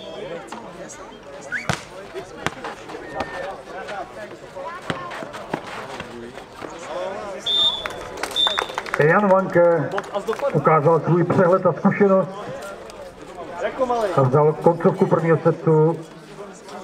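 Spectators murmur and chatter outdoors.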